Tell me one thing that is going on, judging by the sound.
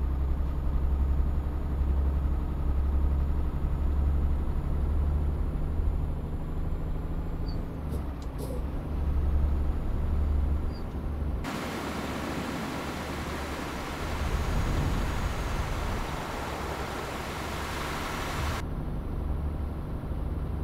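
A truck engine drones low and steady.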